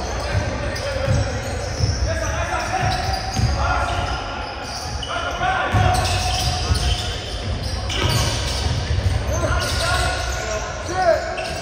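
Sneakers squeak on a hardwood floor.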